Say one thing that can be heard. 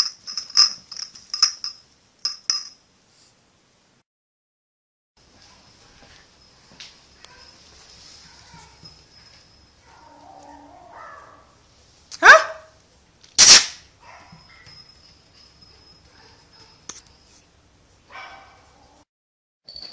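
A small dog yaps and barks sharply.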